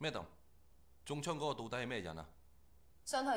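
A man asks a question with tension in his voice.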